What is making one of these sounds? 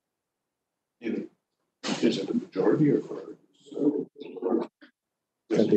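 Another man speaks briefly through a microphone.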